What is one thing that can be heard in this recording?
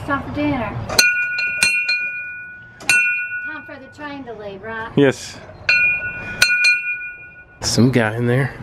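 A small bell rings out clearly several times.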